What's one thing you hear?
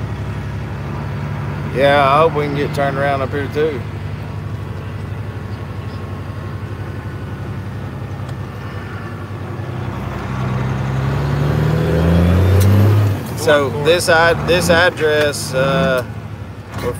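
A heavy vehicle's engine hums steadily.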